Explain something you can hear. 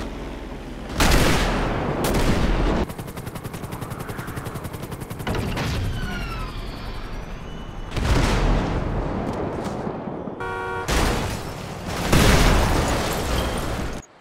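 A body thuds hard onto pavement.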